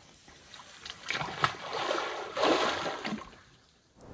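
Water splashes as a swimmer plunges forward.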